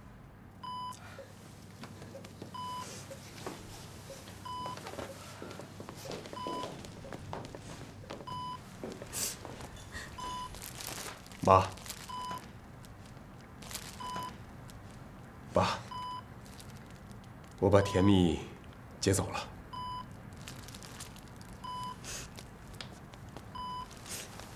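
A heart monitor beeps at a slow, steady pace.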